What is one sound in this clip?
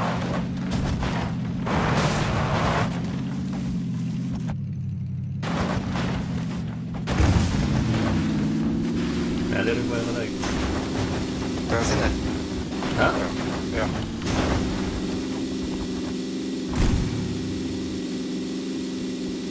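Tyres crunch and bump over rocks and grass.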